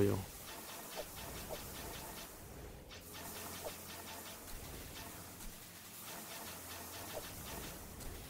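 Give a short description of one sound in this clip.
Short electronic hit sounds blip now and then during a fight.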